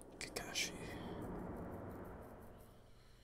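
A man speaks quietly into a headset microphone.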